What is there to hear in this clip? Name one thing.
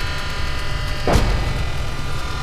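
A loud explosion booms once.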